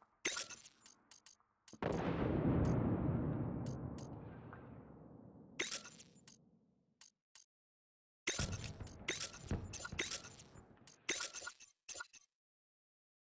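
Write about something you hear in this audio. Short menu clicks tick as options are selected.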